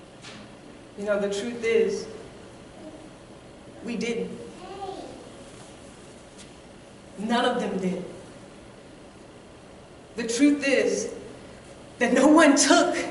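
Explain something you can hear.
A woman speaks with animation in bursts, heard through a microphone in a reverberant hall.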